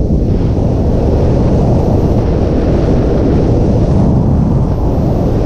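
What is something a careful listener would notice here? A motorcycle engine drones steadily as the bike rides along a road.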